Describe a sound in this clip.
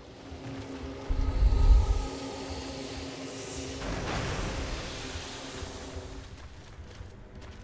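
Heavy boots thud quickly on a hard floor.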